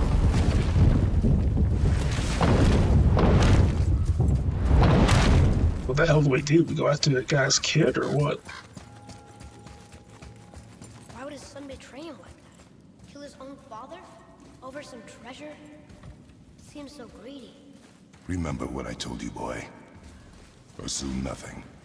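Heavy footsteps thud on stone and dirt.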